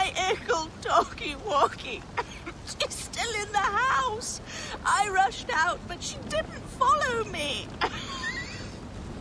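A woman speaks anxiously and with emotion, close by.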